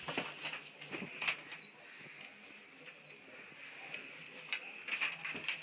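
A child climbs a wooden bunk ladder with soft knocks and creaks.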